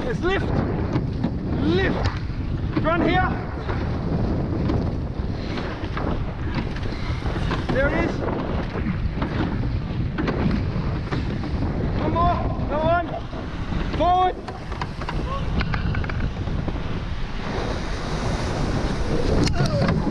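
Oars splash rhythmically through the water.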